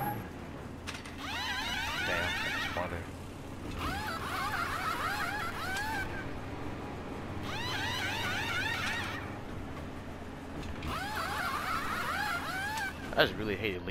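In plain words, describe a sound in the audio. Pneumatic wrenches whir in quick rising bursts.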